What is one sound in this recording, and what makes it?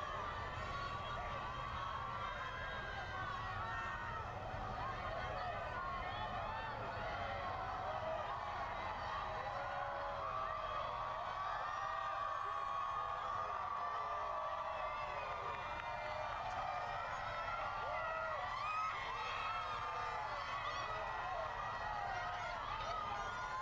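A large crowd outdoors cheers and shouts excitedly.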